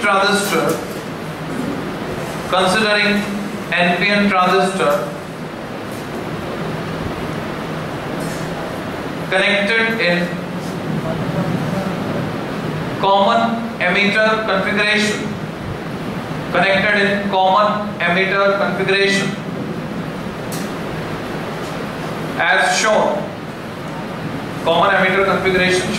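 A man lectures, speaking with animation in bursts and pauses.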